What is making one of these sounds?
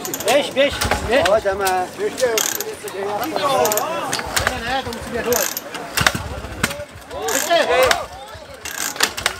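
A crowd of men and women cheers and shouts excitedly outdoors.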